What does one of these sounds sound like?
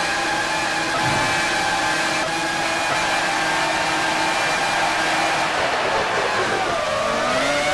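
A racing car engine screams at high speed, then drops in pitch as it slows and shifts down.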